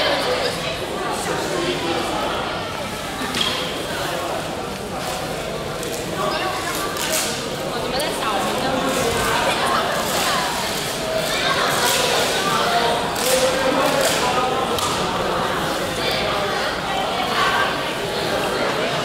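Brooms sweep scraps of paper across a hard floor.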